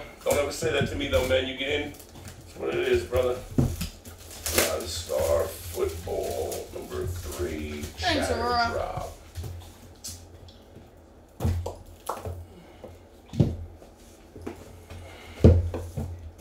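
Plastic wrap crinkles and tears as a box is unwrapped.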